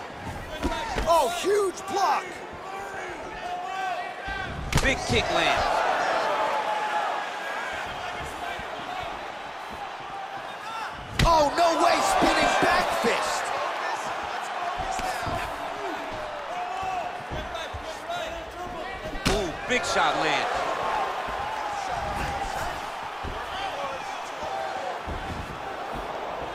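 Punches and kicks land with dull thuds.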